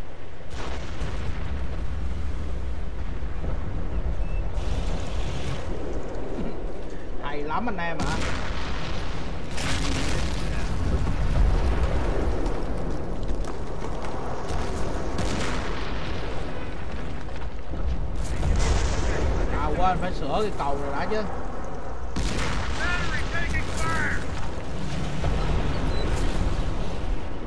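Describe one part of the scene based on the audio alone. Distant gunfire crackles in a battle.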